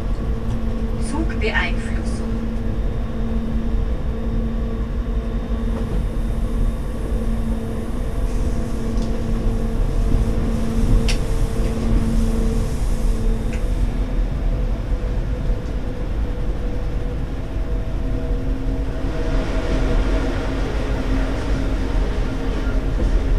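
A train rumbles steadily along the rails with a low drone.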